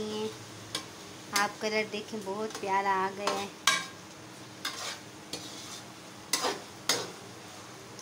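A metal spoon scrapes and clatters against a pan.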